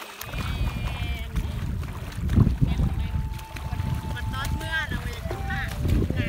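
Water splashes and churns close by.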